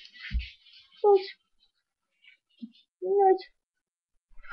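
A cat meows loudly, close by.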